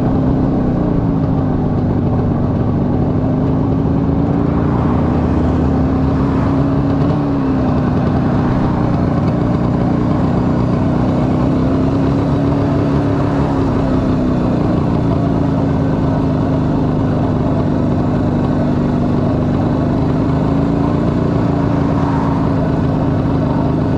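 Wind rushes past in a steady roar.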